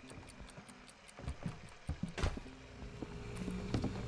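A wooden door opens with a click.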